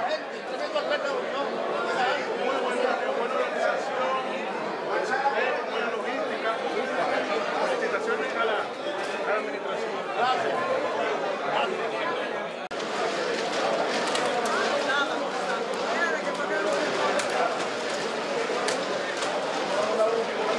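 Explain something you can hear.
A crowd murmurs in a large room.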